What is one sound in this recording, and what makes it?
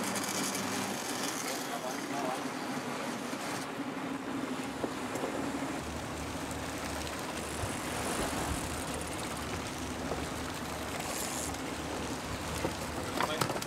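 Waves splash against a moving boat's hull.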